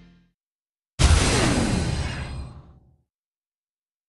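A loud burst of a game sound effect rings out and slowly fades.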